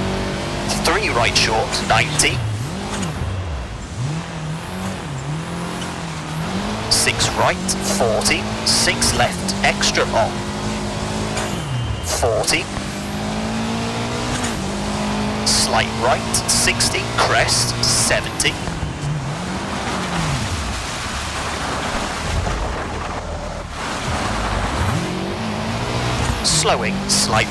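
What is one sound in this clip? A rally car engine revs hard and drops as gears change.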